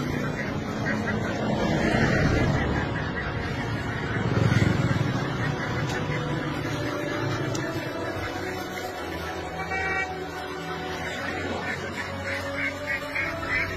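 A flock of ducks quacks loudly and constantly.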